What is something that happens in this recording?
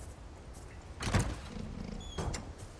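A heavy wooden chest lid creaks open with a thud.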